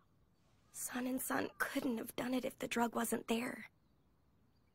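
A young woman speaks softly and sadly.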